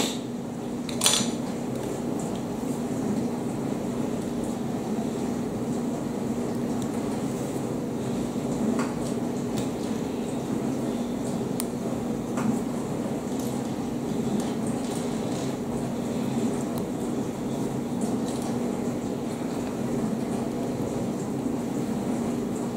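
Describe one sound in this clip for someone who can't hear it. Small plastic pieces click and tap together in someone's fingers.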